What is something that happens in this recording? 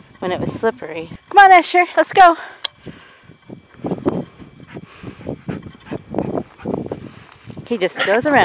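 A dog trots through dry, rustling grass.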